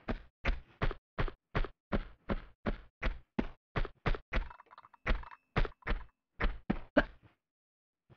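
Quick footsteps pound along a hard path.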